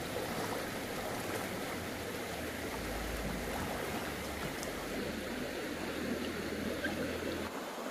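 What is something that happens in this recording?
Water splashes as a net is dipped into a stream.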